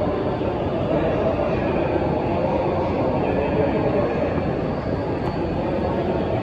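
A stopped train hums with a steady low drone.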